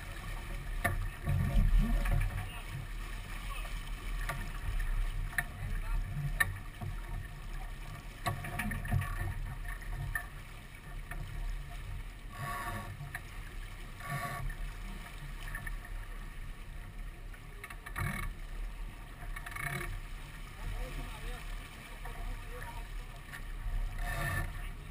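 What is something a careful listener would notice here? Wind buffets the microphone outdoors on open water.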